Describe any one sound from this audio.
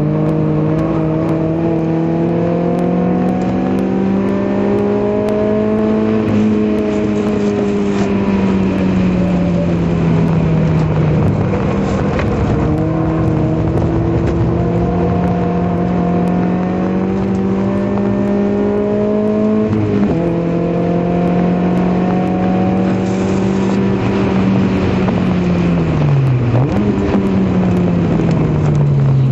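A car engine roars loudly, rising and falling in pitch as it shifts gears.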